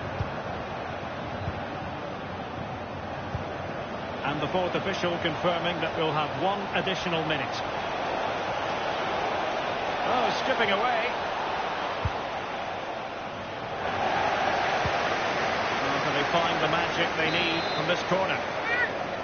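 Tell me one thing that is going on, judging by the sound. A large crowd cheers and roars steadily in a stadium, swelling louder at times.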